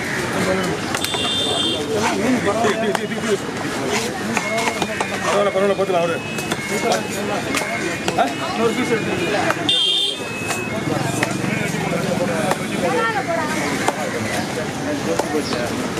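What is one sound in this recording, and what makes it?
A knife chops and slices through a large fish.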